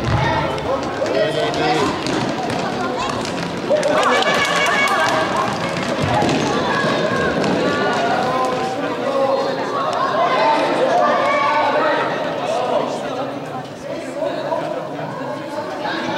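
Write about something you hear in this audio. A ball thuds as it is kicked across the floor.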